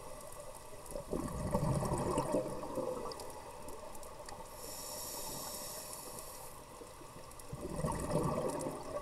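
Bubbles rumble and gurgle as a diver breathes out underwater.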